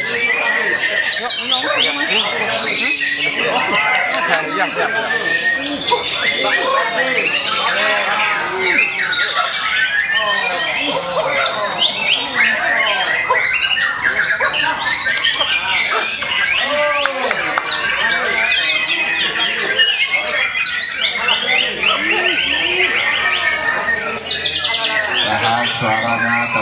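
Many songbirds chirp, trill and warble loudly all around.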